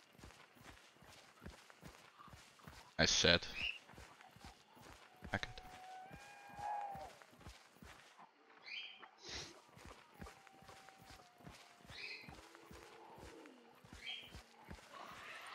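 Footsteps crunch steadily through dry grass.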